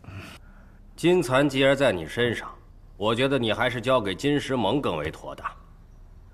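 A man speaks in a measured, persuasive tone.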